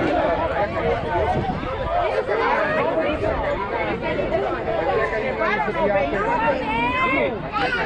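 Young players chatter and shout encouragement nearby outdoors.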